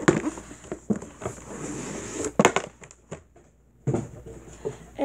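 Plastic packaging rustles and crinkles in a boy's hands.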